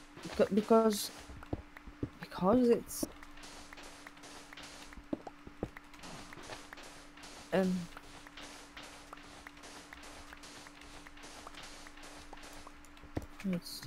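Sand blocks crunch and crumble in quick succession as they are dug.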